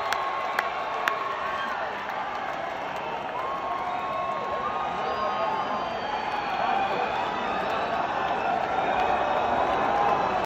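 A large crowd cheers and screams loudly in a big echoing hall.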